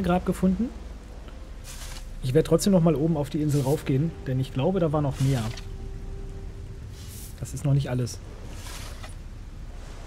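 A shovel scrapes and thuds into soil.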